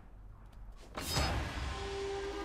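A short bright chime rings out and fades.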